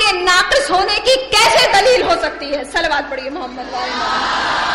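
A woman speaks passionately into a microphone.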